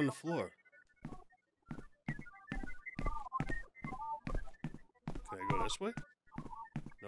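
Footsteps tap at a steady pace on a hard floor.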